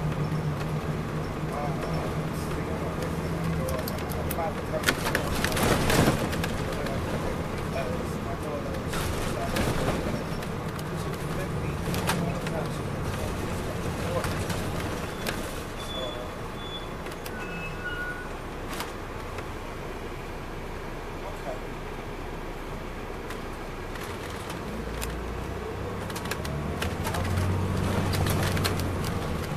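A diesel coach bus engine drones, heard from inside the bus.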